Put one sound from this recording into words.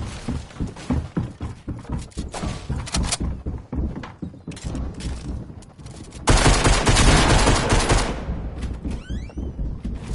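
Footsteps patter quickly across a wooden floor.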